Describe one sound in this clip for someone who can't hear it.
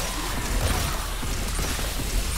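Energy blasts explode with a sizzling burst.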